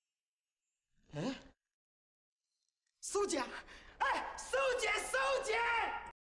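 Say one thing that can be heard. A young man shouts excitedly, close by.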